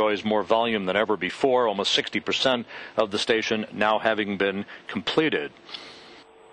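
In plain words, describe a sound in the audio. A woman speaks calmly, heard through a microphone.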